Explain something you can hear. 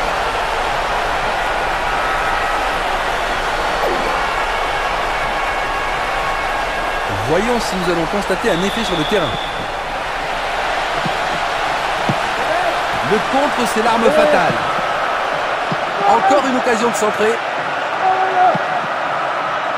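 A stadium crowd roars in a steady wash of noise.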